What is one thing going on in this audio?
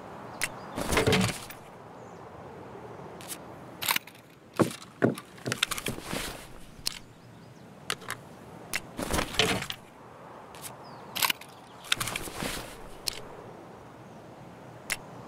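Short clicks and gear rustles sound as game menus open and close.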